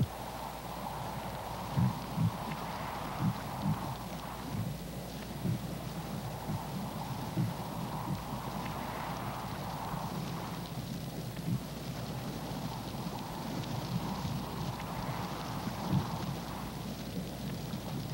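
Hooves thud and clatter on rocky ground as a herd of reindeer walks past.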